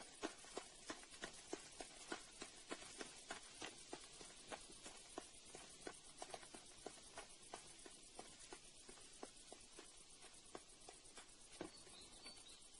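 Hooves clop steadily on a dirt path.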